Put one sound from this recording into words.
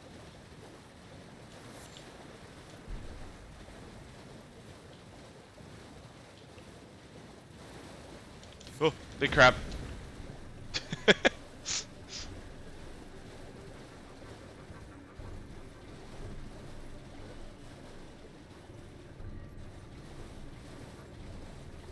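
A horse's hooves splash through shallow water.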